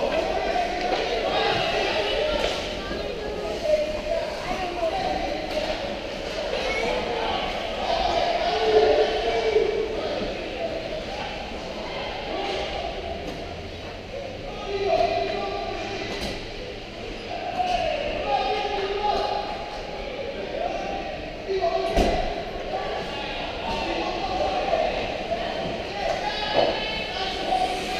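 Skate blades scrape across ice.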